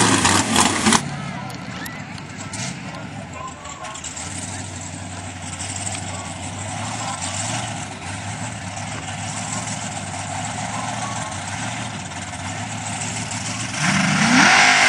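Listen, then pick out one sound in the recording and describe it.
A truck engine idles and rumbles steadily in the distance.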